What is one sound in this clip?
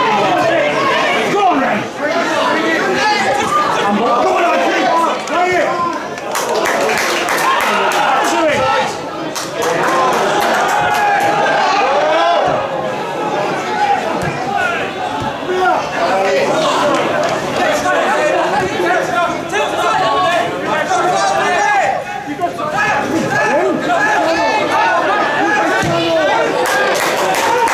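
A large crowd of spectators cheers and chants steadily outdoors.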